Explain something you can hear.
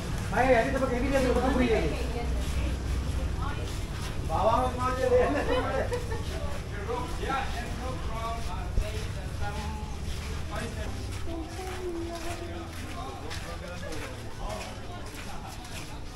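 A young woman talks casually nearby.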